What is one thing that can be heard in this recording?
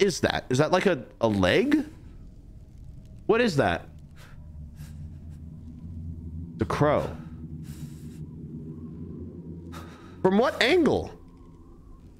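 A young man talks and exclaims with animation into a close microphone.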